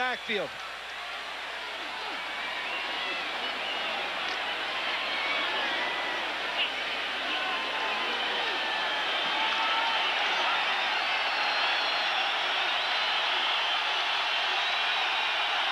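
A large crowd roars and cheers in a stadium.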